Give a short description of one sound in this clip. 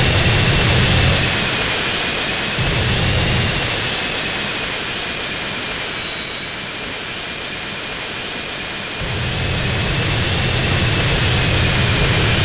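A jet engine roars steadily with a high whine.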